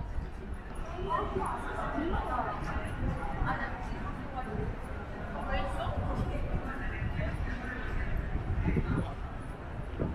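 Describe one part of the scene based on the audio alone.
Young women chat nearby in an open outdoor space.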